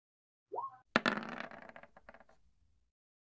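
Dice clatter and roll briefly.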